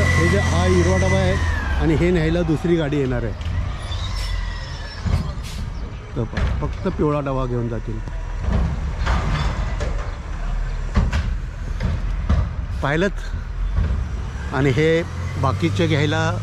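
A middle-aged man talks cheerfully close to the microphone.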